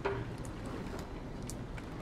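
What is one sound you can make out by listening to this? Footsteps tap on a wooden dock.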